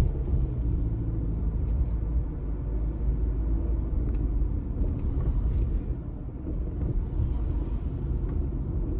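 A car engine rumbles steadily as the car drives along a road.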